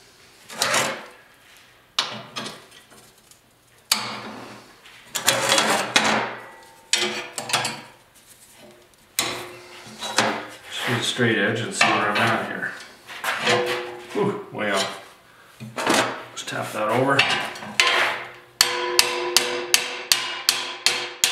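Metal parts clank against a steel vise.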